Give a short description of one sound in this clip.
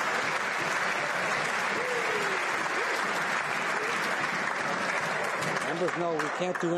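A large crowd applauds loudly in an echoing hall.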